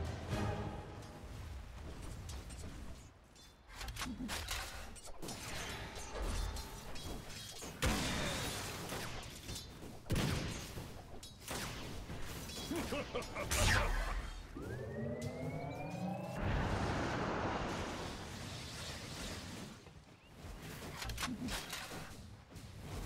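Spells crackle and burst as game characters fight.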